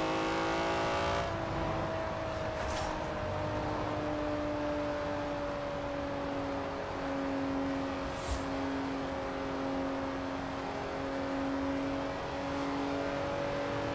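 A racing car engine drones steadily at high speed, easing off slightly after a moment.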